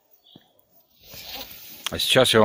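An older man speaks close up, outdoors.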